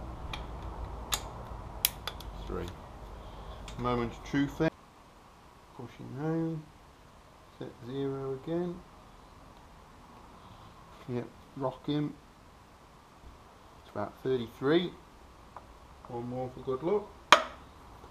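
A metal tool clicks against an engine part.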